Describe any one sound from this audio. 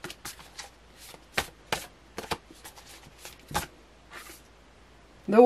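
Playing cards riffle and snap as they are shuffled by hand.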